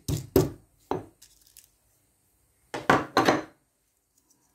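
A stone pestle pounds dried spices in a stone mortar.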